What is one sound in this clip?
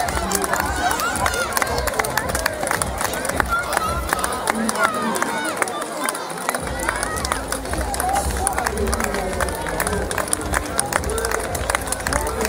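Footsteps of runners slap on pavement as they pass.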